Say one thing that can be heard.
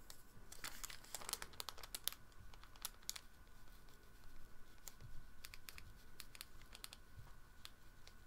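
A paintbrush taps and brushes softly on paper.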